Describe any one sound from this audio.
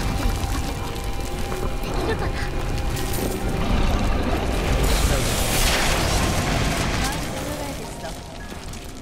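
Magic spells crackle and boom in a noisy battle.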